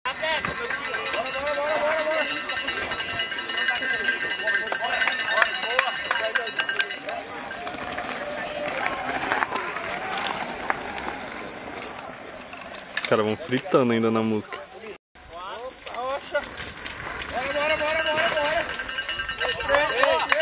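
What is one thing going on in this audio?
Mountain bike tyres skid and crunch over loose dirt.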